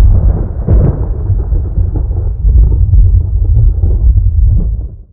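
A large crowd roars in a stadium far off.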